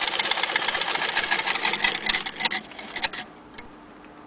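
A sewing machine rattles rapidly as it stitches.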